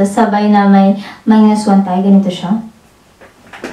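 A young woman sings closely into a microphone.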